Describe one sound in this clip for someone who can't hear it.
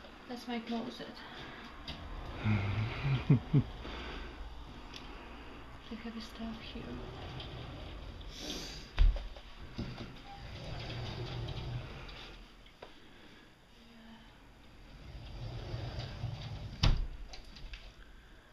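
A middle-aged woman speaks quietly close by.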